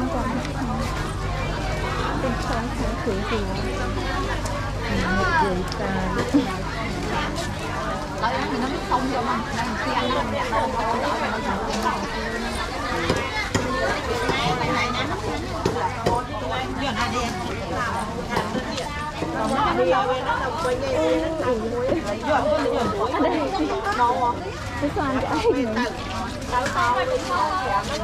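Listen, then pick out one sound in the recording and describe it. A crowd of men and women chatter nearby, with many voices overlapping.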